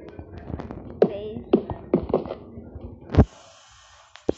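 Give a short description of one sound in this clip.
Blocks are set down with short, dull knocks.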